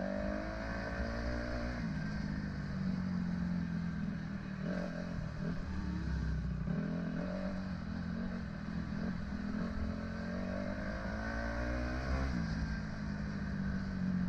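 A dirt bike engine revs and shifts gears while riding a dirt trail.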